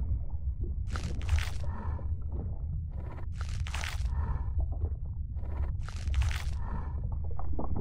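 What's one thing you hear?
A creature lets out sharp shrieking cries in bursts.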